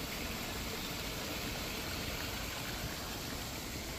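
Water splashes steadily down over rocks in a small waterfall.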